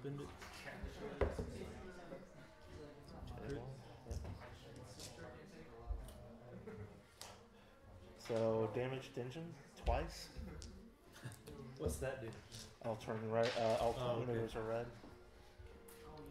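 Plastic game pieces click and slide on a table.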